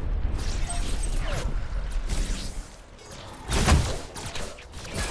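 Gunfire and blasts from a video game battle crackle and boom.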